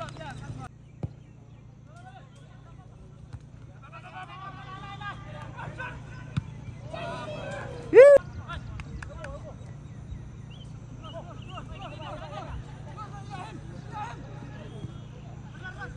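A football thuds as a player kicks it.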